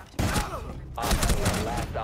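Rapid gunshots fire at close range.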